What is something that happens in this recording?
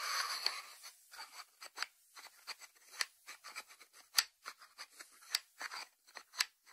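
Fingertips tap on a ceramic lid.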